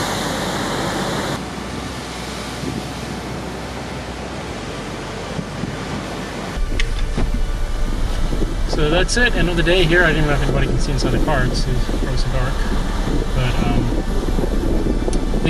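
Heavy waves crash and roar against rocks.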